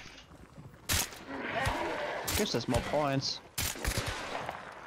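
A revolver fires several sharp shots.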